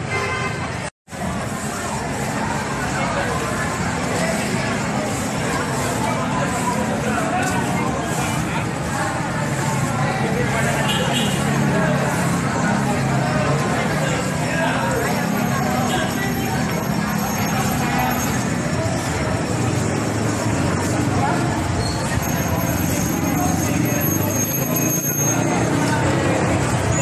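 Street traffic hums and engines idle nearby, outdoors.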